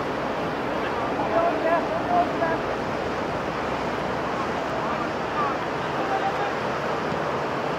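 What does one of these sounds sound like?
Wind blows steadily across an open field.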